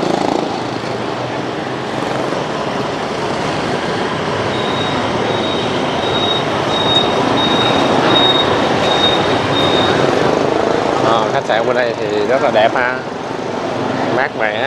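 Motorbikes and cars hum by steadily on a busy street outdoors.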